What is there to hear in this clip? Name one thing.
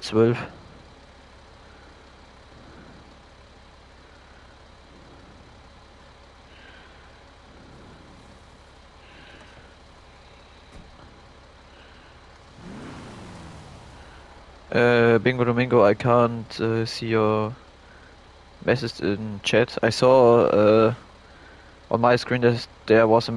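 A wheel loader's engine idles.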